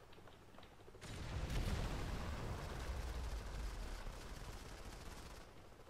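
A deep explosion rumbles.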